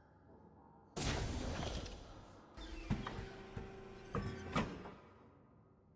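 A mechanical arm whirs and clanks.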